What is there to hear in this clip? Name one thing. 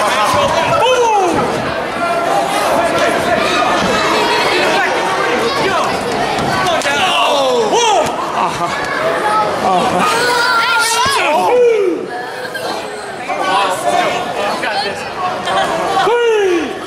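A crowd of children and adults chatters and shouts in a large echoing hall.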